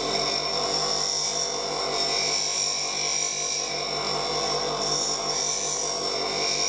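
A bench grinder hums steadily as its wheel spins.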